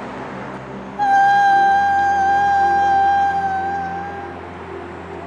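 A young woman sings a long, steady high note, then fades.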